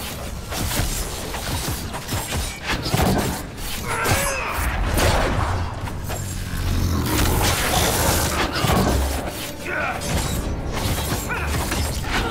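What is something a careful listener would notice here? Magic blasts crackle and boom during a battle.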